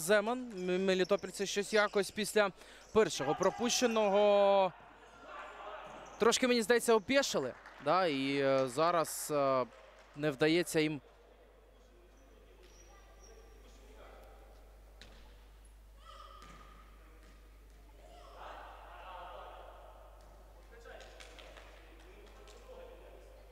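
A ball thuds as players kick it in a large echoing hall.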